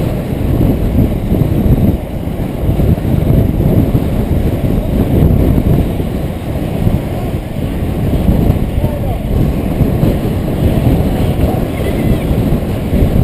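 Wind rushes and buffets past a helmet at speed.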